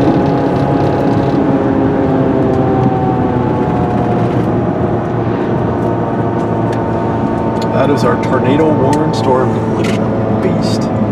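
Raindrops tap on a car's windshield.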